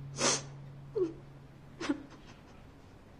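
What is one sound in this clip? A young woman sobs and gasps as she cries close by.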